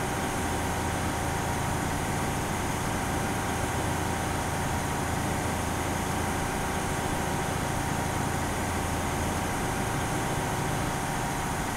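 An armoured vehicle's engine rumbles steadily as it drives along a road.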